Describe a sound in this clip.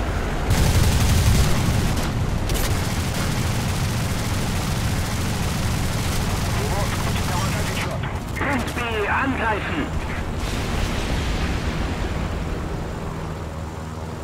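An aircraft engine drones loudly and steadily.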